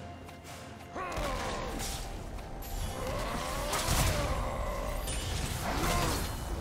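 Fantasy battle sound effects whoosh, zap and clash.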